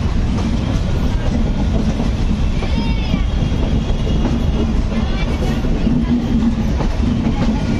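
A diesel locomotive approaches and passes close by with a loud engine roar.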